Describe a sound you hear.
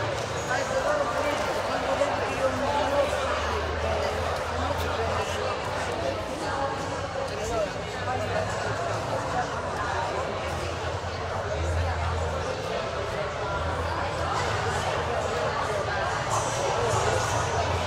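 A woman sings into a microphone through loudspeakers.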